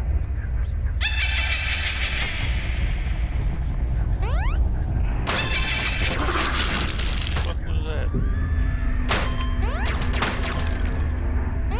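A burst of chiming effect sounds rings out as points are collected.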